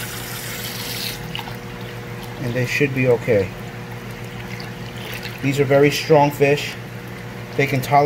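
Water pours from a hose and splashes into a tub of water.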